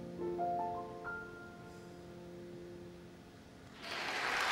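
An ensemble of strings sustains a soft final chord.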